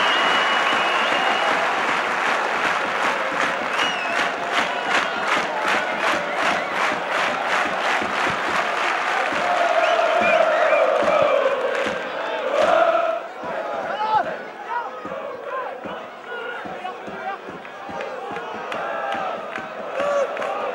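A large crowd roars in an open stadium.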